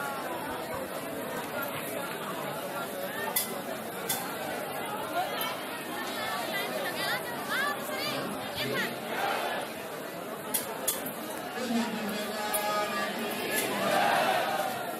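A large crowd chatters and calls out loudly all around.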